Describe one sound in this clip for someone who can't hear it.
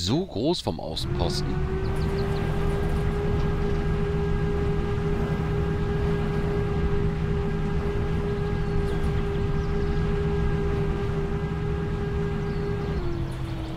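An off-road buggy's engine drones steadily as it drives at a steady speed.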